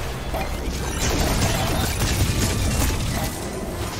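A loud blast of spell energy roars and rings out.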